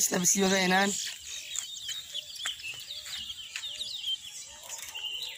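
Caged birds chirp and whistle in quick bursts nearby.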